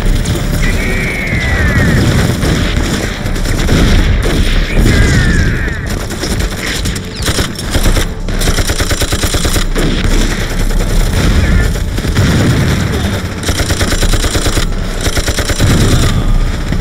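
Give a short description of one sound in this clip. Many men yell as they charge.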